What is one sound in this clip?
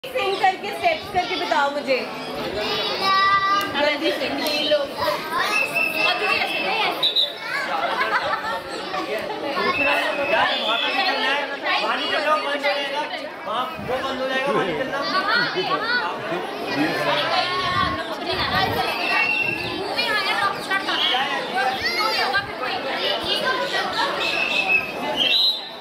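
Several women and children talk and chatter nearby.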